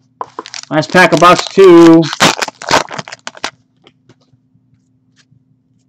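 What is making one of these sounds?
A plastic wrapper crinkles as hands tear it open.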